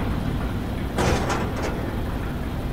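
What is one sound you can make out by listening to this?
A metal locker door swings open.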